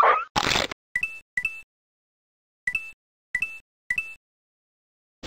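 Short bright chimes ring out several times.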